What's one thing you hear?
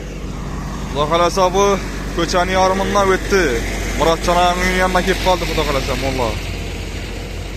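A man talks loudly nearby outdoors.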